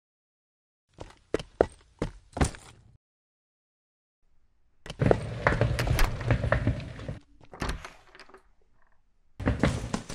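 Footsteps scuff on concrete outdoors.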